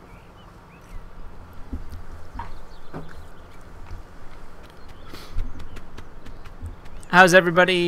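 A goose's feet patter softly as it walks.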